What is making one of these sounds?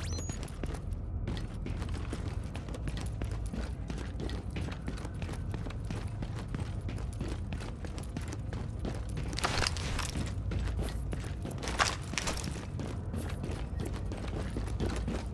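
Footsteps crunch quickly on gravel and rails.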